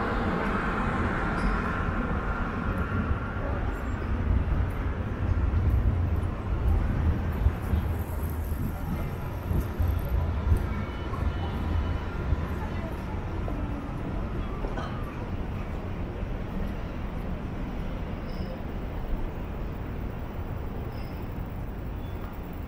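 A low, steady outdoor hum of a city street carries throughout.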